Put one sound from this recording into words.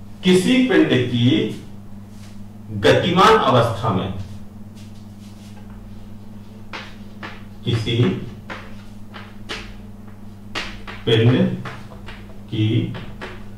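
A man speaks calmly, close by, in short bursts.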